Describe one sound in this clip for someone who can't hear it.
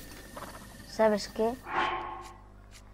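A horse whinnies close by.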